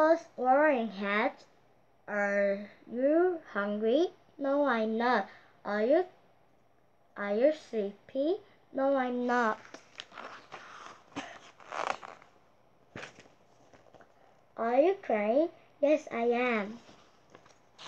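A young girl reads aloud close by, in a clear, lively voice.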